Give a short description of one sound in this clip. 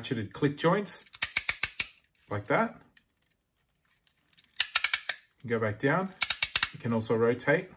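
Plastic gears click rapidly as they turn.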